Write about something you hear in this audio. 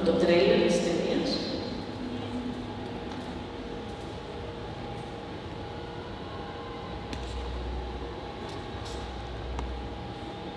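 Music from a film soundtrack plays through loudspeakers in a large echoing hall.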